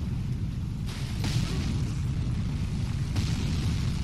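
A heavy blow crashes to the ground with a rushing burst of noise.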